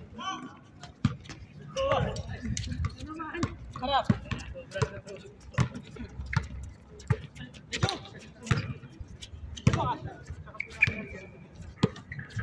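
A basketball bounces sharply on a hard outdoor court.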